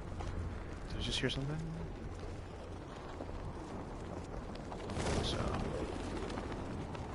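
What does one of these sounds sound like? Wind rushes past steadily and grows louder.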